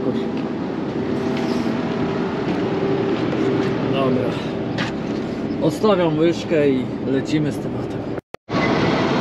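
A diesel engine idles nearby with a steady rumble.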